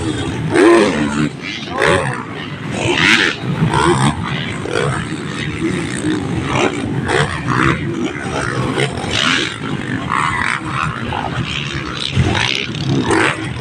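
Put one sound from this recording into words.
Dirt bike engines rev loudly.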